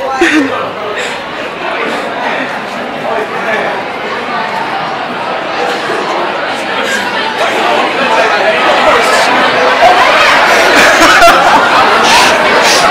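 A crowd of people chatter loudly in a large echoing hall, growing louder.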